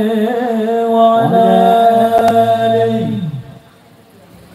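Music plays through loudspeakers outdoors and stops abruptly.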